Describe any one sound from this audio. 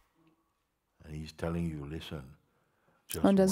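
An elderly man speaks calmly and slowly, close by, with long pauses.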